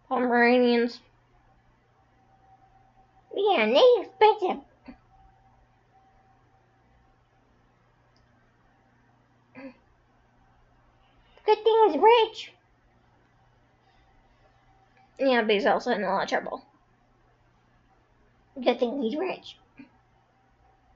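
A young woman speaks in short, playful bursts close to the microphone.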